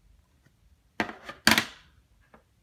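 Plastic card cases clack against each other as they are handled.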